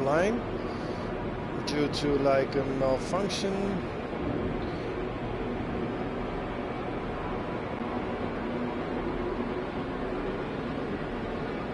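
A spaceship engine hums steadily.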